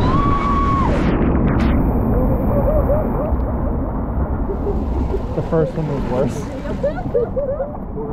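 Water rushes and churns close by.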